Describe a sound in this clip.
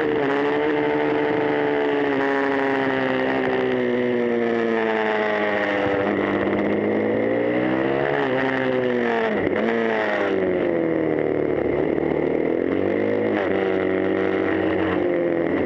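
A motorcycle engine roars loudly close by, its pitch rising and falling as it shifts gears.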